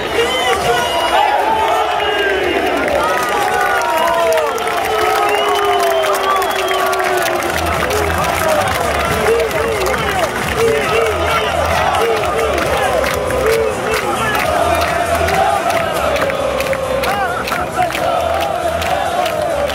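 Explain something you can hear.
A large stadium crowd cheers and chants outdoors.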